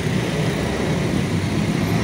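A motorbike engine putters close by.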